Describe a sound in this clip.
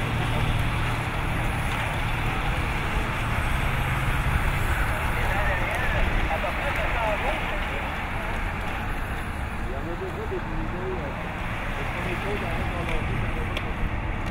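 A group of racing bicycles whirs past on a road.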